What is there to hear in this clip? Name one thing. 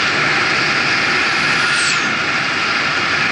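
An oncoming bus rushes past with a brief whoosh.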